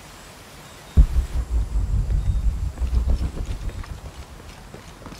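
Footsteps thud quickly on rocky ground.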